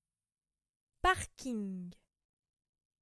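A young woman speaks a short word close by.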